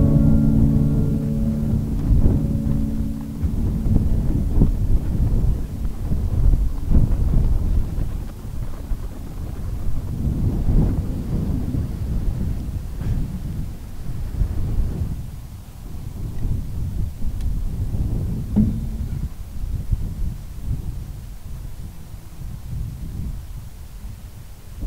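Strong wind blows and rumbles outdoors.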